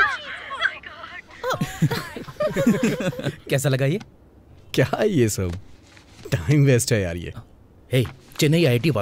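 Young men talk and laugh together with animation, close by.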